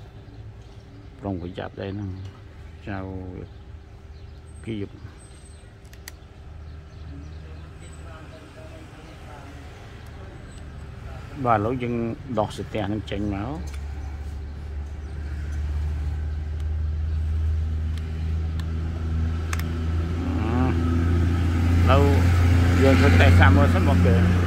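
Small plastic phone parts click as they are pried and handled.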